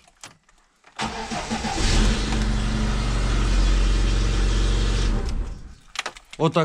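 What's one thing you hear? A car's starter whirs as the engine cranks and turns over.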